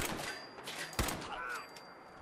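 A gun fires a single shot.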